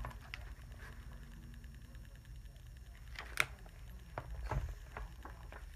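Book pages rustle and flap.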